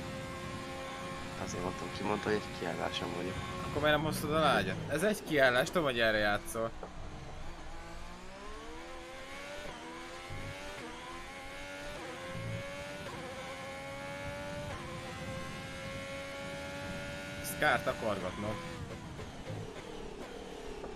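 A racing car engine whines, rising and dropping in pitch with each gear change.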